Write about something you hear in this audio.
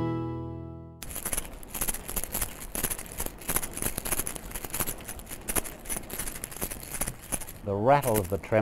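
A fishing lure rattles rapidly as it is shaken close by.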